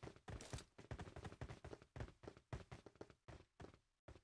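Footsteps patter quickly on a hard surface.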